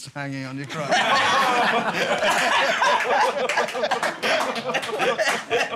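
A middle-aged man laughs heartily nearby.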